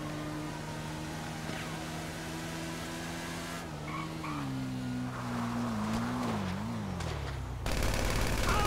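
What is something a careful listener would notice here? A motorcycle engine hums steadily, then drops in pitch as the bike slows and stops.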